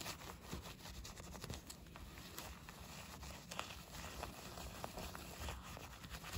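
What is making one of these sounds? A soft brush scrubs wet foam on a car's surface with quick squishing strokes.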